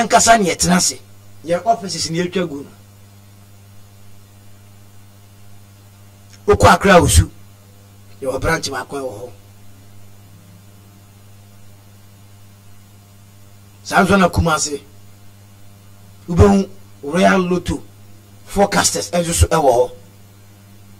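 A man speaks in short bursts through a microphone.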